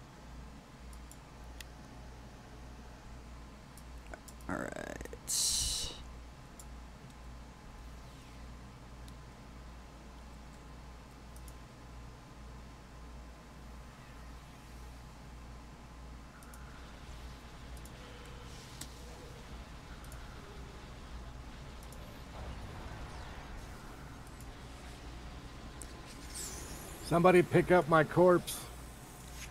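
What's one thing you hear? A man talks quietly into a headset microphone.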